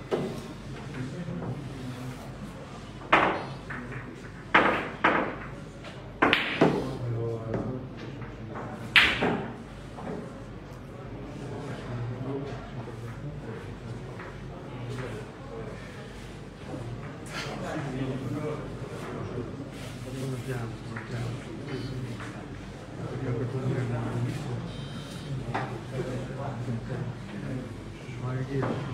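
Men murmur quietly in the background.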